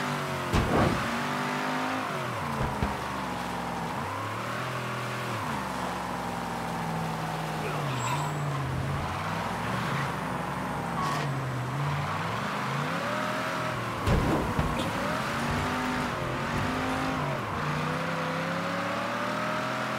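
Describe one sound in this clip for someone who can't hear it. A car engine revs up and down as the car speeds along.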